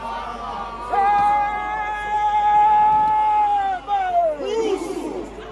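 A man shouts out a long call.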